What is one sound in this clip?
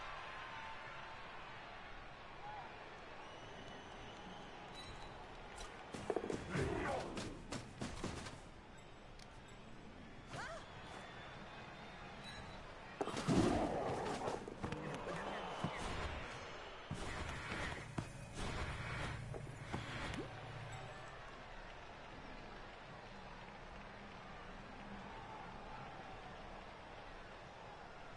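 Armoured players clash with heavy thuds and crunches.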